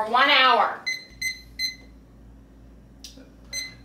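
A microwave keypad beeps.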